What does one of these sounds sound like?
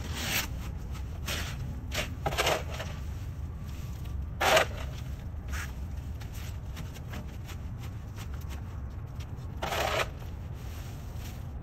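A rake scrapes dry leaves on pavement.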